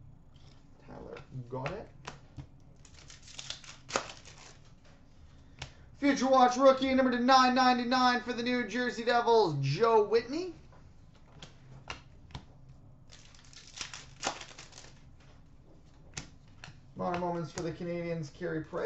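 Trading cards rustle and flick as they are sorted by hand.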